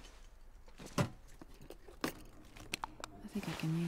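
Items rustle and clatter as a shelf is searched.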